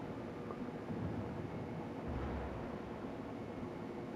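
A warship's guns fire a distant shot.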